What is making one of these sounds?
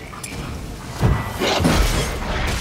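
A sword swings and strikes.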